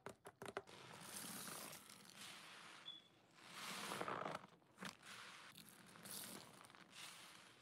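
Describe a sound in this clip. Wet sponges squelch and fizz with foam as they are squeezed.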